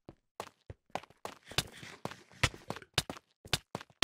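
A sword strikes another player in a fight.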